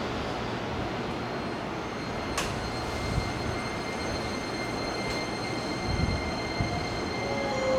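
A second train rolls away along the tracks and fades.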